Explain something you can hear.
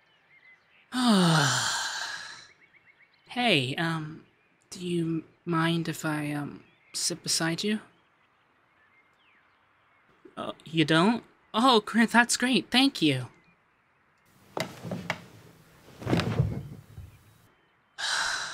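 A young man speaks softly and playfully close to a microphone.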